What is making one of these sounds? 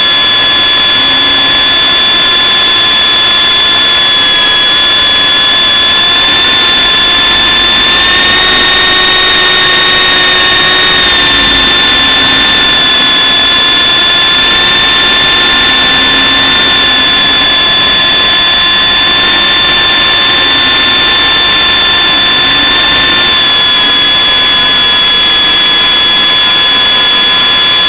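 A small electric motor whines steadily at a high pitch, shifting slightly as it speeds up and slows down.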